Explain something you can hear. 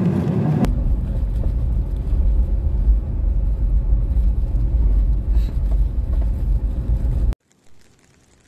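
A car rumbles and bumps along a rough gravel track.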